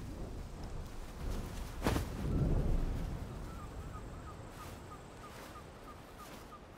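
Wind rushes low and steady, rising briefly then easing.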